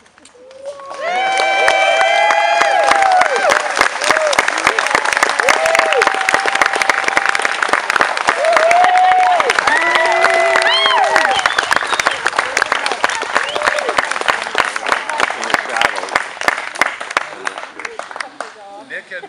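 A crowd of guests claps and cheers loudly outdoors.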